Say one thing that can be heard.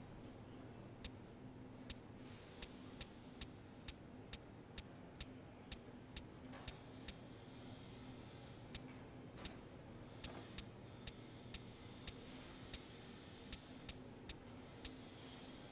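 Short menu clicks tick one after another at an uneven pace.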